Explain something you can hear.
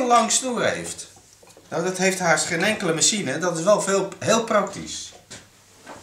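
A middle-aged man talks calmly and close up into a microphone.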